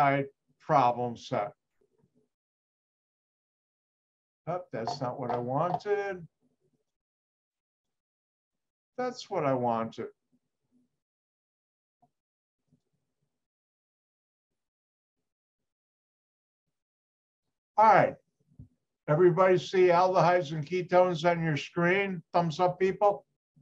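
An elderly man speaks calmly over an online call, with long pauses.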